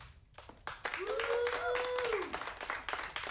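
A saxophone holds a steady note.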